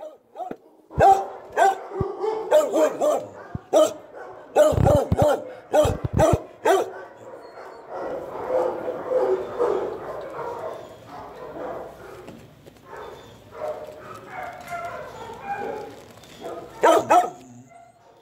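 A metal kennel gate rattles and clanks.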